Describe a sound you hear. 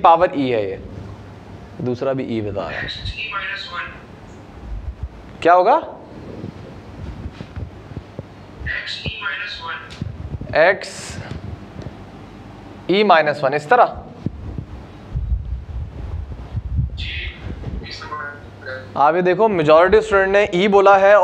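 A young man speaks calmly, explaining, close by.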